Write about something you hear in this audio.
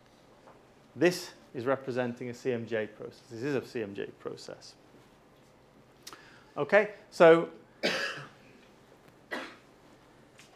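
A man lectures calmly in a room with a slight echo.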